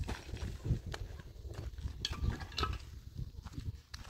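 Concrete blocks knock against each other.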